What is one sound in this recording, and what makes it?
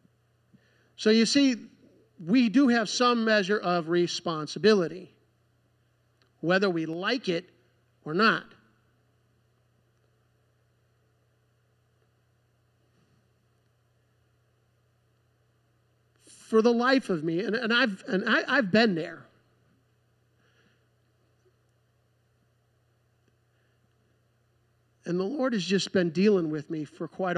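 A man speaks calmly through a microphone and loudspeakers in a large room, with pauses between phrases.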